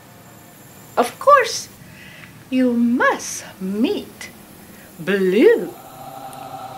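A woman speaks in a theatrical, witchy voice close by.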